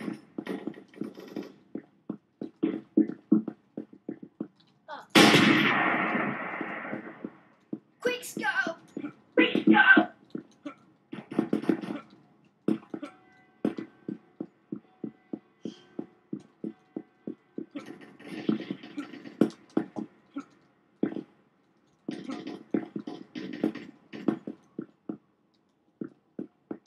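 Footsteps patter quickly as a player runs.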